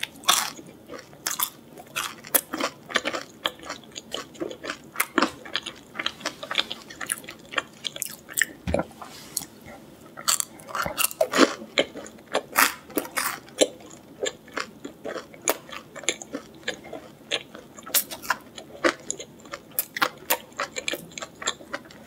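A young woman makes wet smacking sounds while chewing, close to a microphone.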